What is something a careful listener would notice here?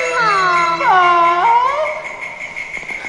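A woman sings in a high, wavering voice.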